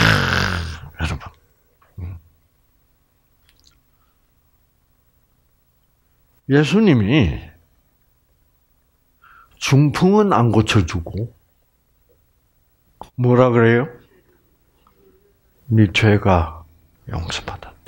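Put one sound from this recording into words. An elderly man speaks with animation into a headset microphone, with pauses between phrases.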